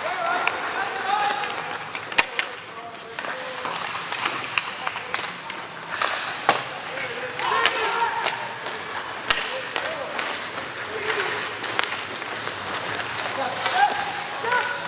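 Hockey sticks clack against a puck with sharp knocks.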